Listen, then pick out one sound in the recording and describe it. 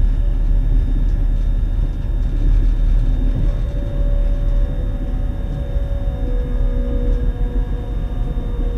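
A train rumbles steadily along the tracks, with wheels humming and squealing softly.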